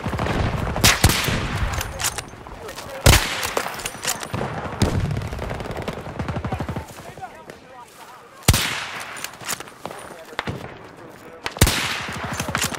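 Loud rifle shots crack one at a time, each followed by a rolling echo.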